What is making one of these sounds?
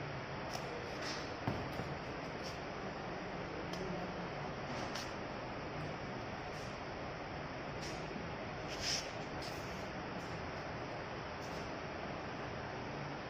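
Rubber sheets and soles rustle and tap as they are handled.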